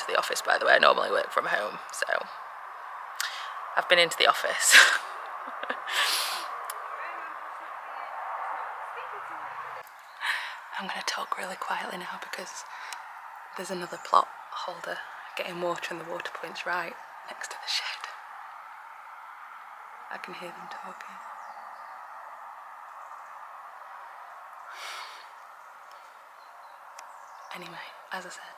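A young woman speaks softly and close to the microphone.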